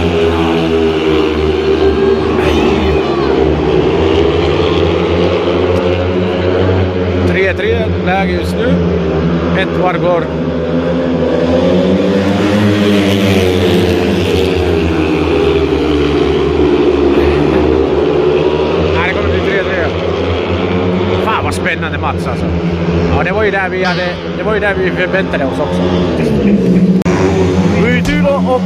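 Motorcycle engines roar loudly as bikes race around a track.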